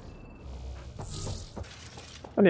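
A crackling energy burst surges and fades.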